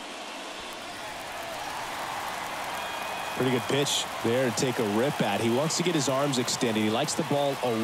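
A large crowd cheers and swells louder.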